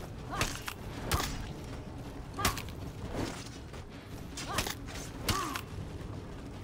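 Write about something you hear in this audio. Metal blades clash and strike in quick bursts.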